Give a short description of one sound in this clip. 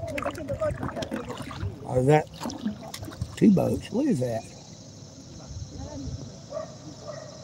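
Water laps gently against the hull of a small boat.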